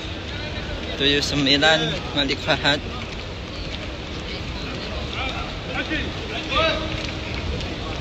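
Men's voices call out nearby in the crowd.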